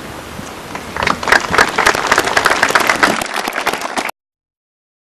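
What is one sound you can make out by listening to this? A large crowd claps outdoors.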